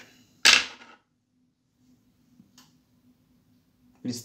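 Small metal parts clack softly as they are set down on a hard surface.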